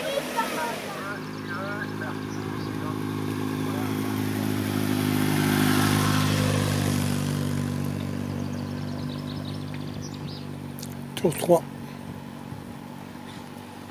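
A motorcycle engine hums as the bike approaches, passes close by and fades into the distance.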